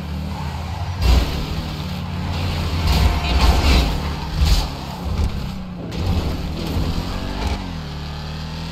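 Tyres thump and crunch over rough dirt and grass.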